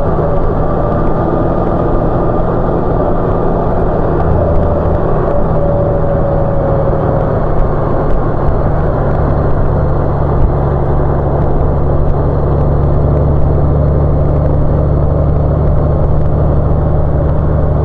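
A motorcycle engine hums steadily close by as the bike rides along.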